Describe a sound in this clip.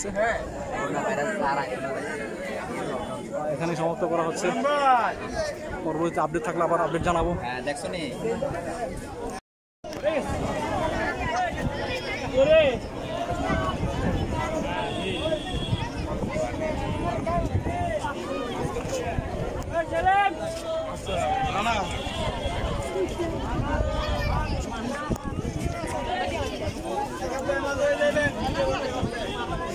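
A large crowd of men and women talks and murmurs all around, close by, outdoors.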